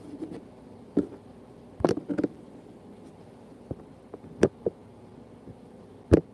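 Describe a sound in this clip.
A hand bumps and rubs against a microphone, making loud thumps.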